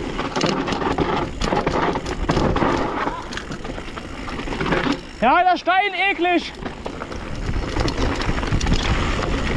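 A mountain bike rattles and clatters over bumps.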